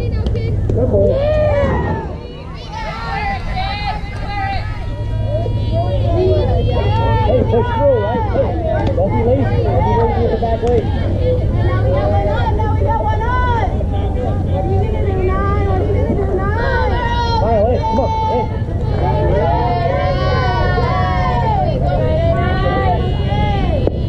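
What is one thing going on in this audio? Young girls cheer and chant outdoors nearby.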